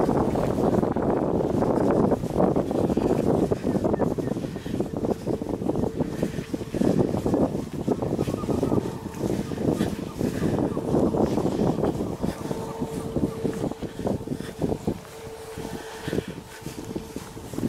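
Footsteps swish through dry grass.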